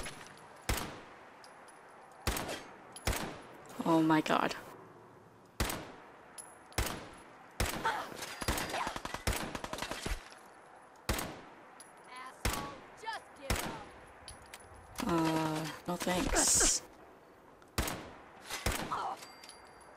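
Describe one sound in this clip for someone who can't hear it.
Gunshots ring out one at a time, each with a short echo.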